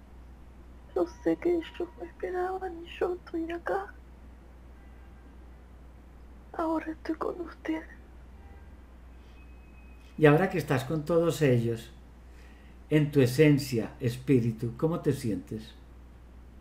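An elderly man speaks calmly over an online call, in short bursts.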